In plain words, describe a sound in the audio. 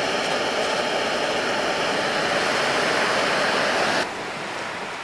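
Water bubbles and boils in a pot.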